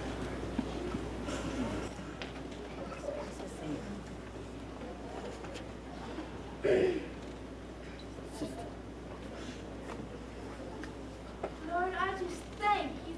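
A middle-aged woman reads aloud with emotion.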